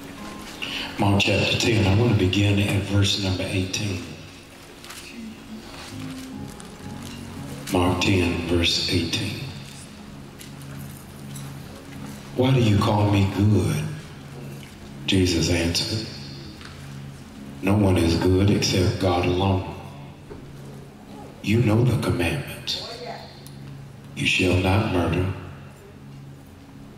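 A man speaks slowly and with feeling into a microphone, in short bursts with long pauses, in a room that echoes.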